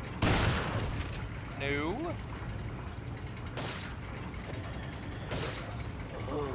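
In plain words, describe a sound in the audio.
A shotgun fires loud blasts that echo briefly.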